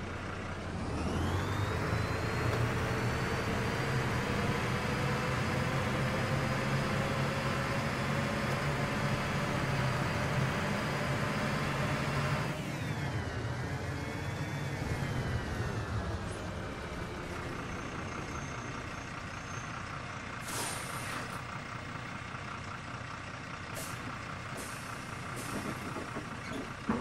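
A diesel city bus engine accelerates, then its engine note drops as the bus eases off.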